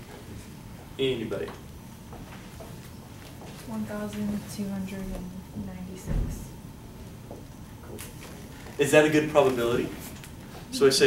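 A man lectures with animation.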